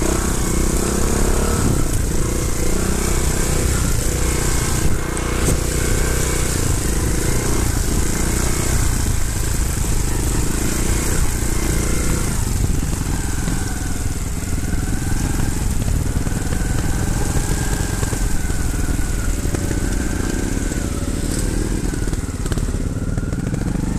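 A dirt bike engine revs and putters loudly up close.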